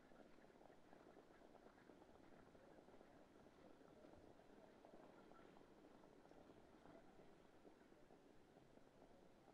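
Horses' hooves pound rapidly on a dirt track.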